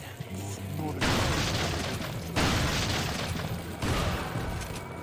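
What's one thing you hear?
Shotgun blasts boom loudly with echoing bursts.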